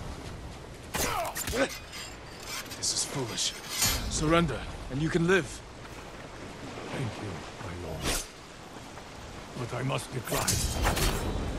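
A man speaks gruffly nearby.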